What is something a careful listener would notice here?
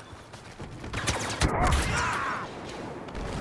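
Laser blasts fire and hit close by in quick bursts.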